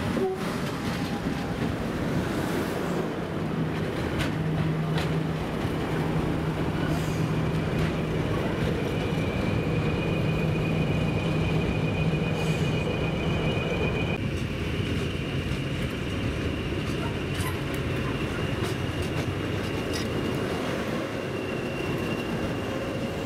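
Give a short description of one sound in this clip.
A diesel locomotive engine idles with a loud, steady rumble close by.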